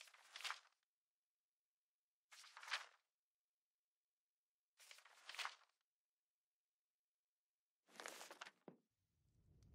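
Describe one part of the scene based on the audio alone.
Paper pages rustle as a book's pages are turned.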